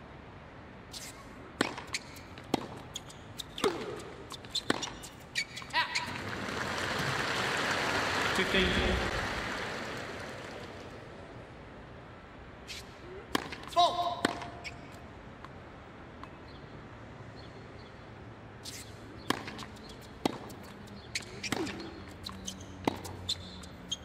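A tennis ball is struck hard with a racket, again and again.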